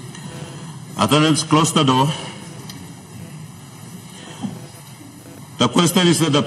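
A man speaks loudly through a microphone in a large echoing hall.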